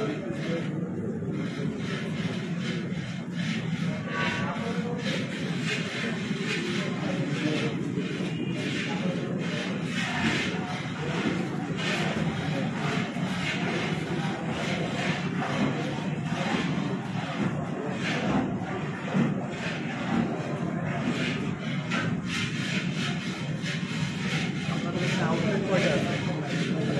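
Several men talk over one another nearby in a busy, echoing room.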